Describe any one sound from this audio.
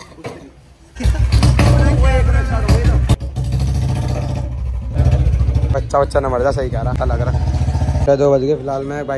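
A motorcycle engine rumbles loudly close by.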